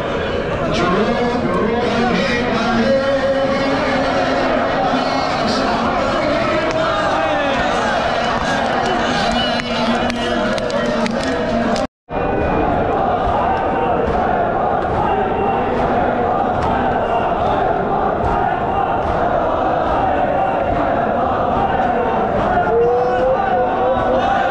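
A large crowd of men chants loudly in an echoing hall.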